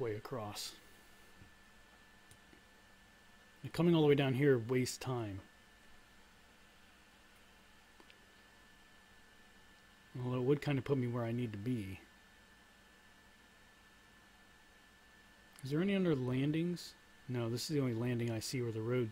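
A man speaks calmly and with animation into a close microphone, in short bursts with pauses.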